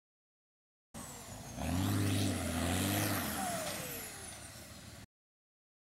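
An armored truck's engine roars and revs as it drives over grass.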